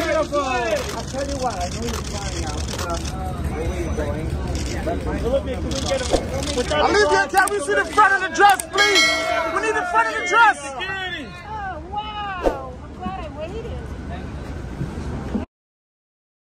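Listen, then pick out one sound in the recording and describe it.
A crowd of men and women shout and call out loudly nearby on a city street.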